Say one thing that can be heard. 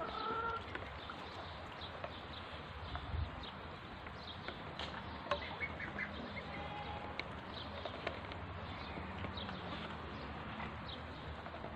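Young birds peck rapidly at food in a dish.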